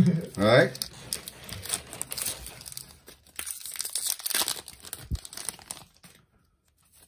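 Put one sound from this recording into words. A foil wrapper crinkles and rustles as it is torn open.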